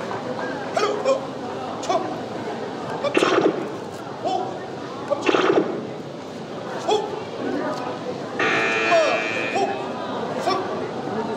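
A crowd of young spectators cheers and shouts in a large echoing hall.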